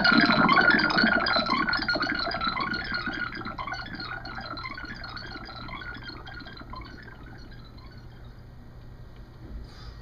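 Electronic synthesizer music plays and slowly fades away.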